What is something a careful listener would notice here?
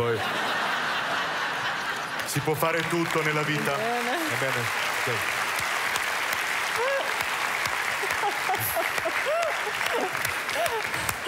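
A studio audience laughs and applauds throughout.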